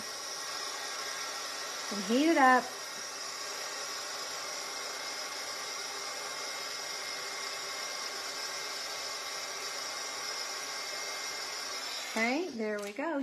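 A heat gun blows with a steady whirring hiss, then stops.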